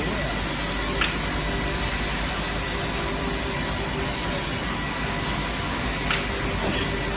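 Wooden boards knock against one another.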